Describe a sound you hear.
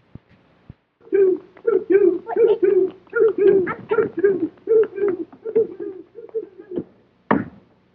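A puppet character sings in a high, squeaky voice.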